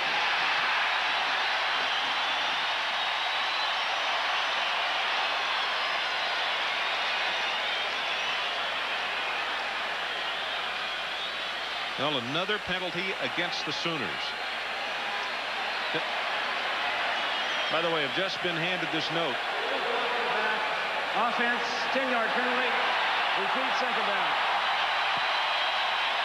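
A large crowd roars steadily in a big open stadium.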